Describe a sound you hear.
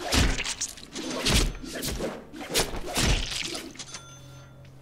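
Blades slash and strike enemies in quick, heavy blows.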